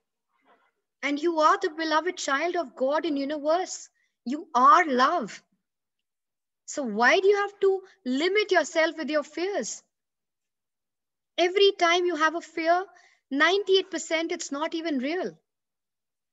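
A woman speaks calmly and clearly into a close microphone, as if on an online call.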